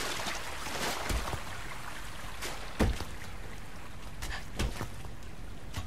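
Hands and feet knock on a ladder's rungs while climbing.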